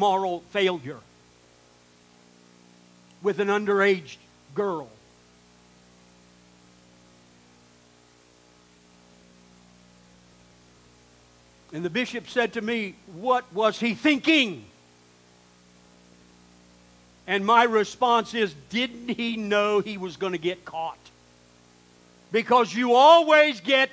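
A man speaks with animation into a microphone, with long pauses between phrases.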